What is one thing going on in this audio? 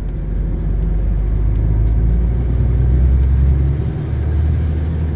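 Tyres roll over the road surface with a steady rumble.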